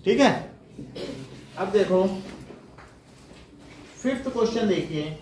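A man speaks calmly in short phrases nearby.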